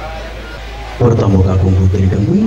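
A young man speaks with animation into a microphone, heard through loudspeakers.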